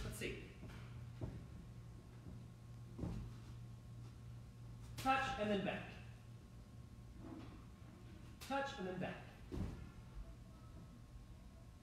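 Hands and feet thump softly on a gym mat.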